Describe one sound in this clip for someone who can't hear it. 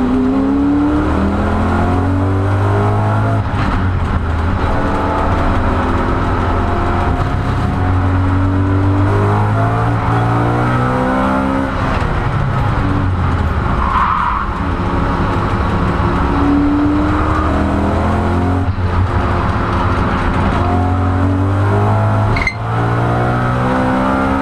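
A race car engine roars loudly from inside the cabin, revving up and down through the gears.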